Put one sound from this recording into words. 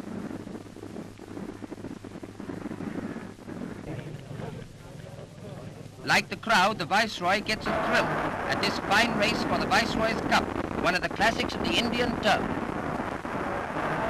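Horses gallop on turf.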